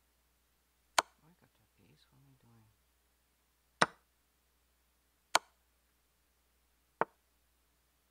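A short sharp click sounds several times as game pieces are moved.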